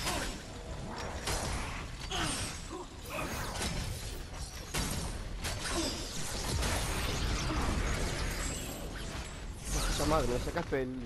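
Weapons fire in rapid bursts with crackling energy blasts.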